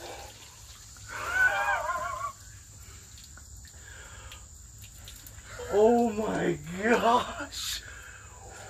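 A man talks and laughs up close.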